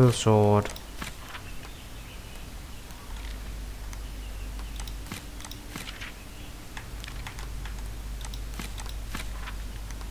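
A book page flips over with a papery rustle.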